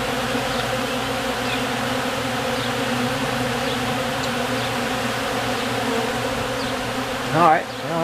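A dense swarm of bees buzzes loudly and steadily close by.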